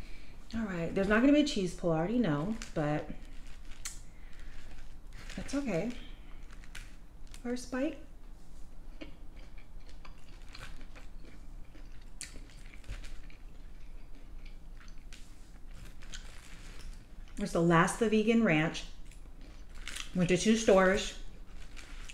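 A plastic fork scrapes and clicks against food.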